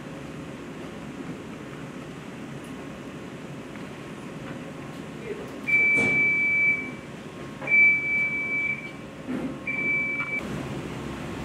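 Fabric rustles as shirts are folded and laid flat.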